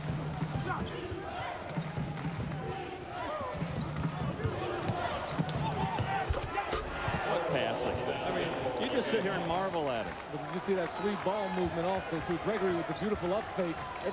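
A large indoor crowd cheers and roars, echoing in a big arena.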